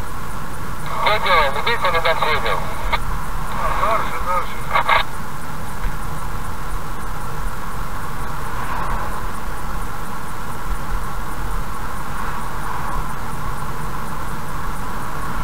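A car's engine hums and its tyres roll steadily on the road.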